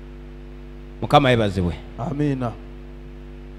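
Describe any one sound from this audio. A young man speaks with animation into a microphone, heard through loudspeakers in an echoing hall.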